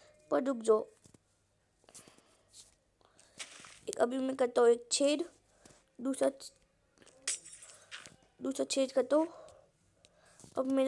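A young boy talks with animation, close to a microphone.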